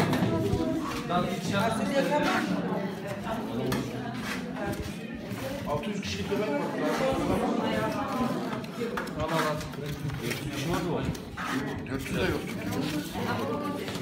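A metal ladle scrapes and clinks against a large metal pot.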